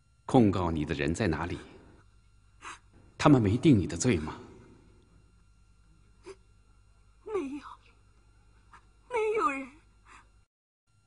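A woman speaks in a tearful, trembling voice.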